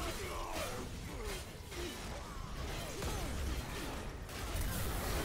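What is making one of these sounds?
Energy attacks whoosh and crackle.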